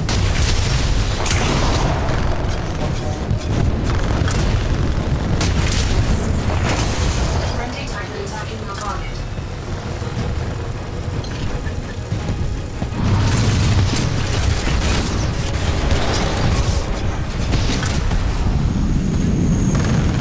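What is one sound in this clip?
Heavy machine gun fire rattles rapidly.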